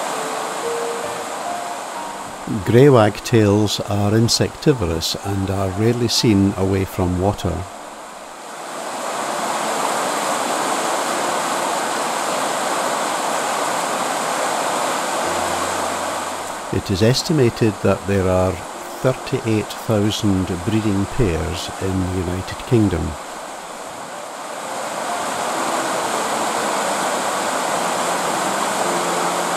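A fast stream rushes and splashes over rocks nearby.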